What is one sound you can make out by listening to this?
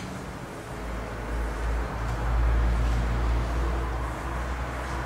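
A felt eraser rubs and swishes across a chalkboard.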